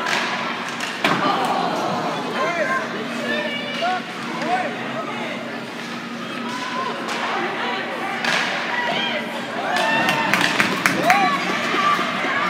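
Hockey sticks clack against a puck.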